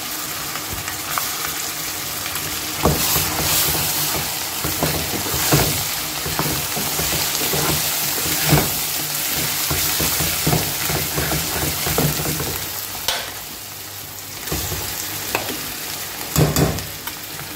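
A metal spoon scrapes against a metal pan.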